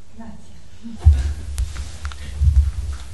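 Clothing rustles and brushes loudly close by.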